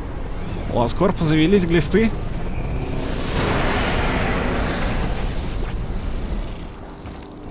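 A giant robot's jets roar loudly.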